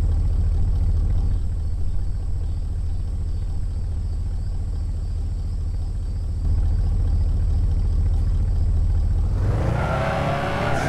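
A car engine drones low and steadily.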